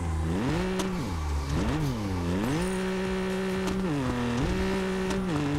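A car engine revs up and down as it shifts gears.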